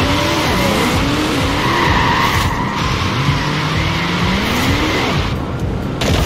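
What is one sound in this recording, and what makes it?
Tyres screech as a car slides sideways on loose ground.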